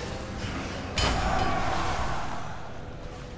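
A sudden magical blast bursts loudly and rings out.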